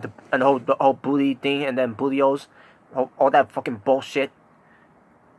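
A young man speaks close to the microphone with animation.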